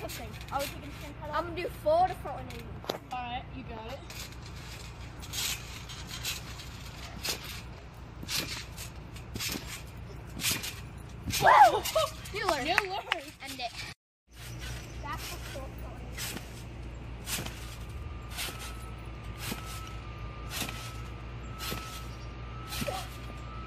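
A trampoline mat thumps and creaks under repeated bouncing.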